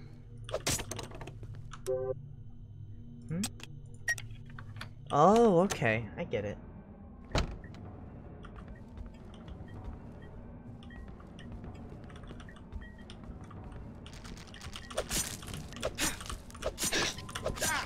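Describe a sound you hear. Computer keyboard keys click and clatter.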